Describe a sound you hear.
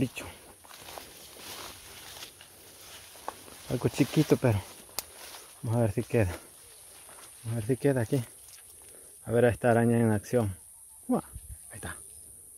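Leaves and stems rustle as someone pushes through dense brush.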